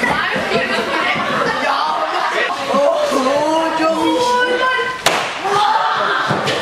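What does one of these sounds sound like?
A group of young people chatters and laughs loudly.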